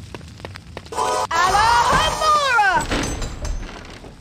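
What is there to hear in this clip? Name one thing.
A magical chime shimmers and sweeps up and down, then fades.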